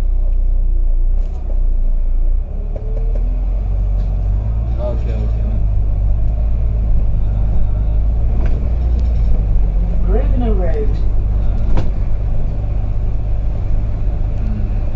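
A bus engine rumbles steadily from close by.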